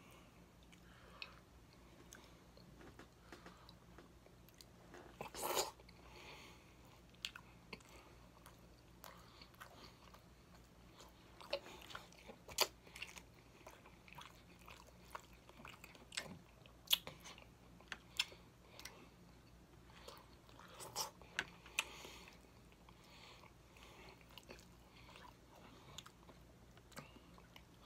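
A man chews food wetly and smacks his lips close to a microphone.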